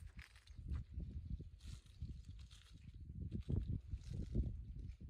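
Leaves rustle in the wind.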